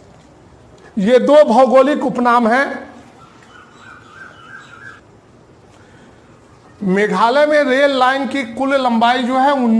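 A middle-aged man speaks clearly and steadily, close by.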